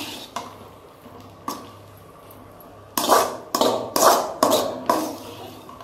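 A metal spatula scrapes and clanks against a metal wok, getting quicker and louder toward the end.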